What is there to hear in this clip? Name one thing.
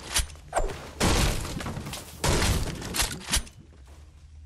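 A pickaxe strikes wood in sharp, repeated knocks.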